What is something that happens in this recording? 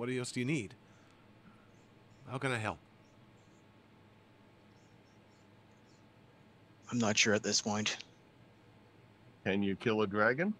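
A man speaks into a microphone over an online call, in short bursts with pauses.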